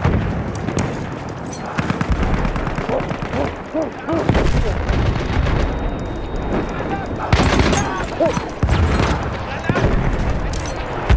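Gunshots crack and boom in quick bursts.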